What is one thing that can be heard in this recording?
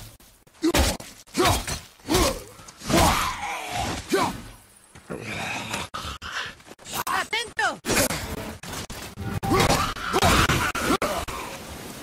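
An axe strikes hard with heavy thuds.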